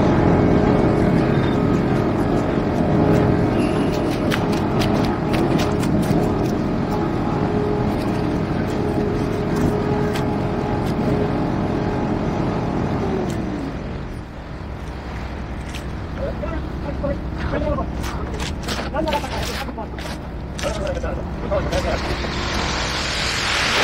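Rakes scrape and splash through wet concrete.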